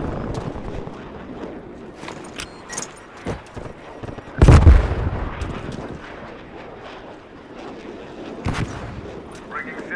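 Footsteps run quickly over gravel and dirt.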